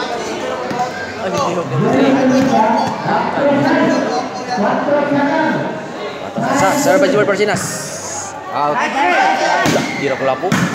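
A crowd chatters and calls out under a large echoing roof.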